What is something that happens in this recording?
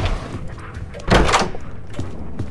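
A wooden door swings open.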